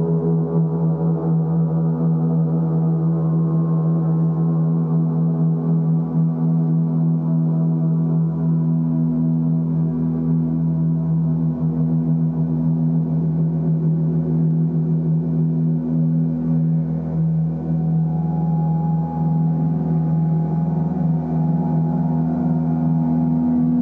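Large gongs hum and shimmer in a deep, steady drone, swelling softly as they are rubbed and struck.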